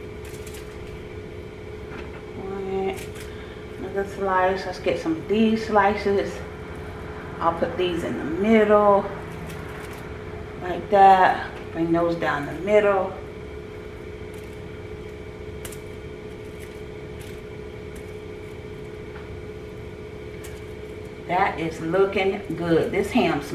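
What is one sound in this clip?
Foil crinkles softly as meat is laid on it.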